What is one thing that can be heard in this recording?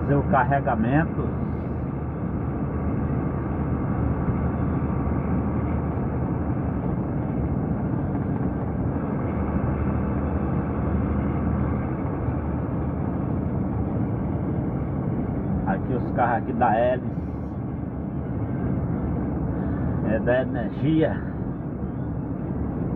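A car engine hums steadily as tyres roll on the road.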